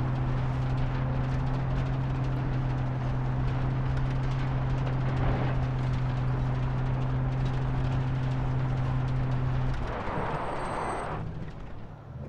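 Tyres rumble over a rough dirt road.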